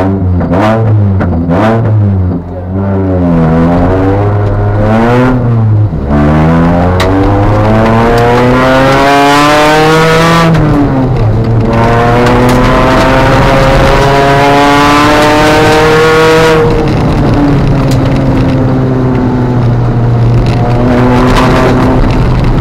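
A rally car engine roars loudly, revving up and dropping with each gear change.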